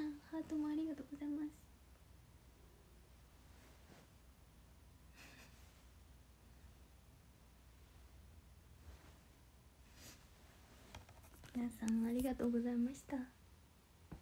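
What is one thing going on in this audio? A young woman speaks softly and brightly, close by.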